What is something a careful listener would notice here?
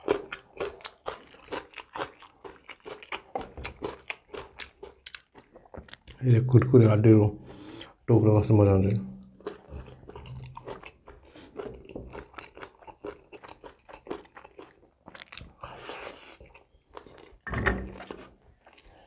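A man chews wet food noisily, close to a microphone.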